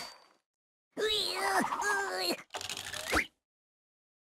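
A cheerful game jingle plays for a win.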